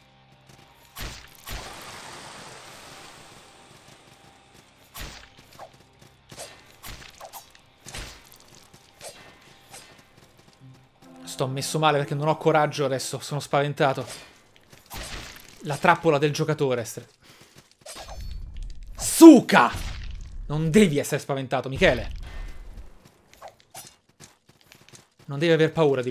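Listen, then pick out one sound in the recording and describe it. Weapons clash and swish in a fight.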